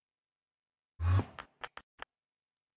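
A short magical whoosh plays as a game character teleports.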